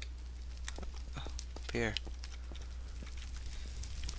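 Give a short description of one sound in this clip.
Fire crackles softly.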